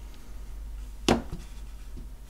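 A phone is set down on a hard surface with a soft knock.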